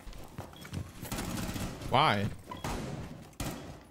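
A gun fires a few quick shots.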